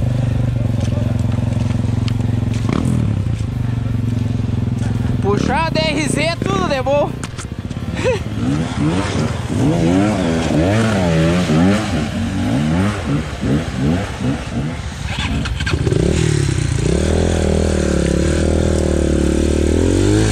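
A dirt bike engine idles and revs up and down close by.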